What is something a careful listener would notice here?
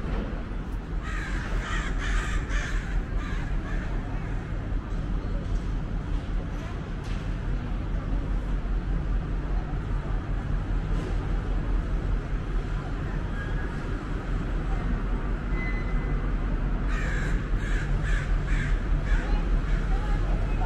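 Footsteps tap on a hard walkway.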